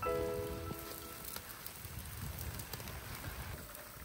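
Liquid pours into a sizzling pan.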